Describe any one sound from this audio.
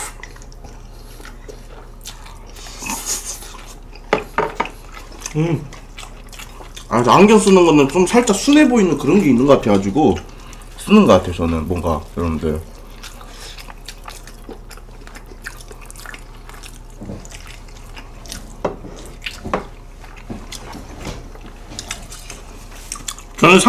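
Two young men chew and slurp food noisily.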